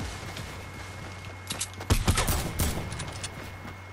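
Building pieces snap into place with quick clattering knocks.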